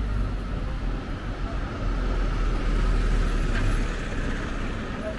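A bus passes with an engine rumble.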